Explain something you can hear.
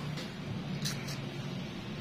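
A brush scrubs across a toe.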